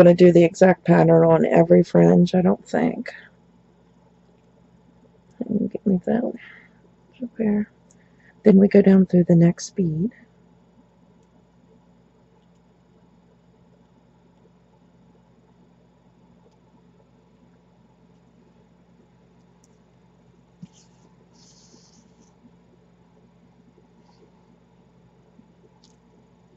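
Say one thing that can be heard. Small beads click and rattle softly under fingers.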